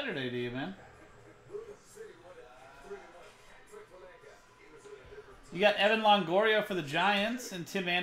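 Cards shuffle and slide against each other.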